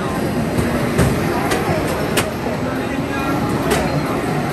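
Crashes and bumps clatter from arcade racing games.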